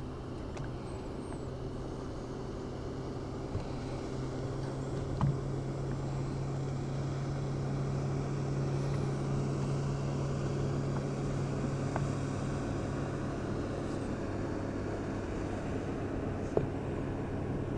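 A trolling motor hums steadily.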